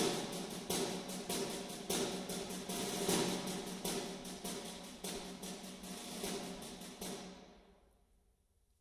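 A concert band plays loudly, with brass and drums.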